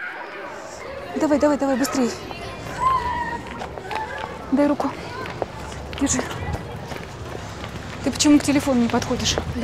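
Children shout and chatter outdoors at a distance.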